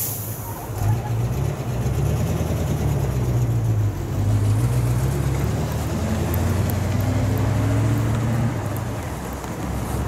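A bus engine rumbles as the bus drives past close by.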